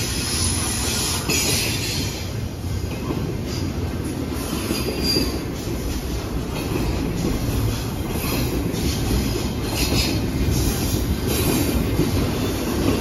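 A freight train rumbles past close by at speed.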